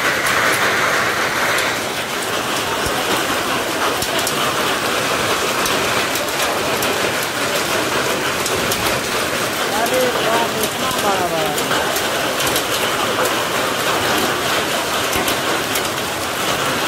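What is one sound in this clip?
Hail pours down steadily outdoors, with a dense hiss.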